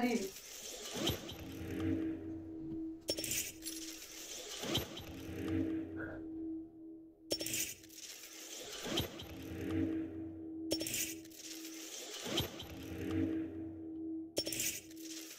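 A card flips over with a bright whoosh and a shimmering chime, again and again.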